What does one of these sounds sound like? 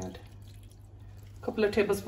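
Liquid pours into a plastic container.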